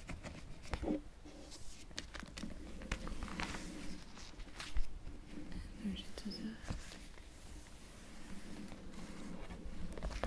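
Plastic album pages rustle and crinkle as they are turned.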